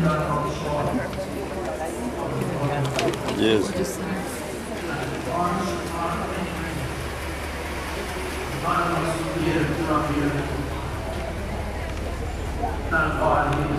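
A crowd of men and women chatter outdoors nearby.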